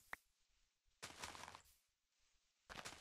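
Dirt crunches as a block is dug out.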